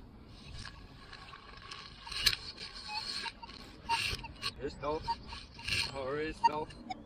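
A spade cuts and scrapes into grassy soil.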